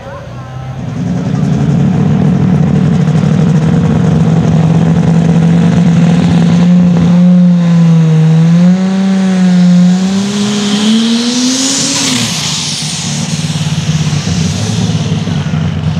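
A pulling tractor's engine roars loudly at full throttle, its pitch wavering and rising.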